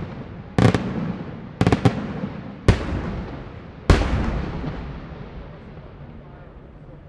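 Fireworks burst with loud booming bangs that echo and rumble away.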